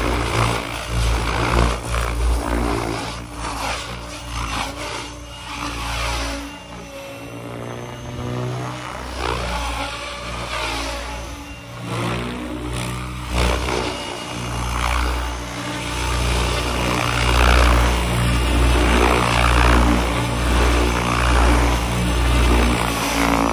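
A model helicopter's rotor whirs loudly, its pitch rising and falling as it swoops and hovers close by.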